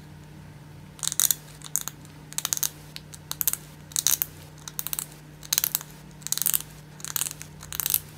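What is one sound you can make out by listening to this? Scissors snip and scrape at a hard plastic cap.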